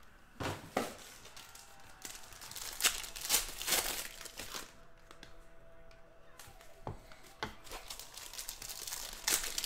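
Foil wrappers crinkle and tear as packs are ripped open.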